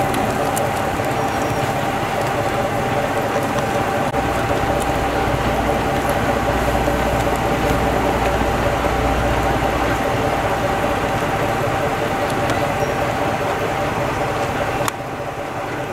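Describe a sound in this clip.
A train engine idles nearby with a steady hum.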